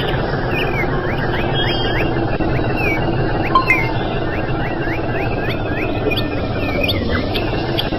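A tractor engine rumbles steadily.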